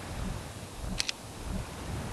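A short, sharp click sounds once.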